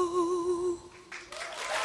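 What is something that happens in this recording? A woman sings a held, wavering note through a microphone.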